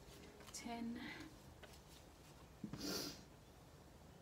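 A card rustles as it is handled.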